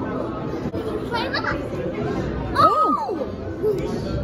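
A young girl calls out in a high voice close by.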